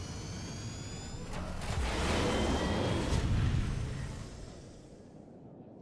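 A large spaceship engine hums and roars overhead.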